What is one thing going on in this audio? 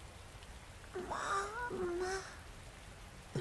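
A young girl speaks quietly, close by.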